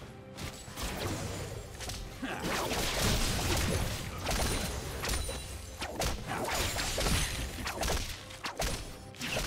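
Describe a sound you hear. Magic spells whoosh and burst in a video game battle.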